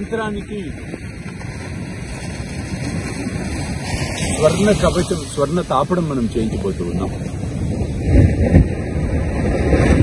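A middle-aged man speaks calmly and clearly close to a microphone.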